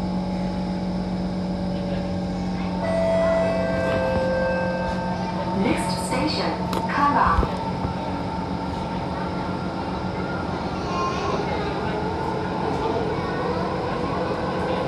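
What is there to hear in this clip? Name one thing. A train hums steadily with its doors shut.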